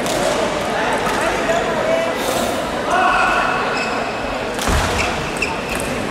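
A crowd of spectators murmurs in a large echoing hall.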